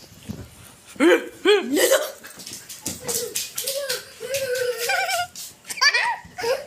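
A small child squeals and babbles.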